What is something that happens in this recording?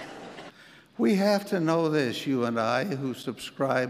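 An elderly man speaks steadily through a microphone.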